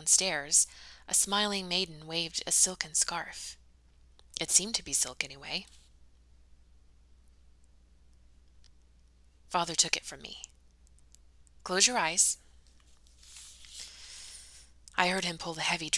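A woman reads aloud calmly, close to a microphone, with pauses.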